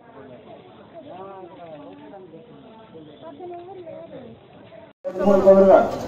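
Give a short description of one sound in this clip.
Several adults talk in a crowd outdoors.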